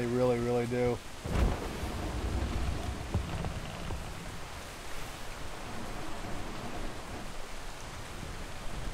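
Rough waves surge and splash against a wooden ship.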